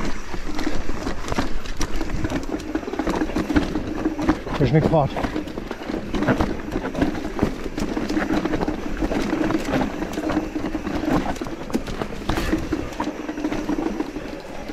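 A mountain bike's frame and chain clatter over bumps.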